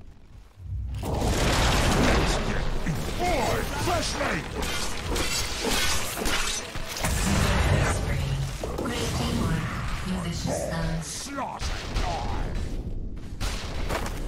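Magic blasts and clashing weapons ring out in a video game battle.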